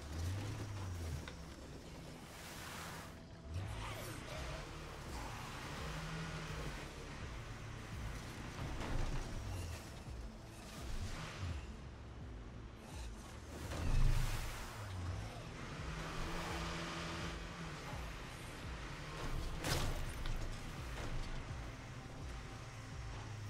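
A truck engine rumbles and revs as it drives over rough ground.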